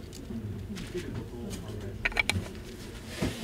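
A plastic rear cap is twisted onto a lens mount.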